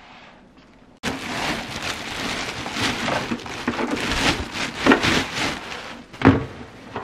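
Plastic wrapping crinkles loudly as it is pulled off.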